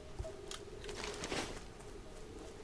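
A paper map rustles open.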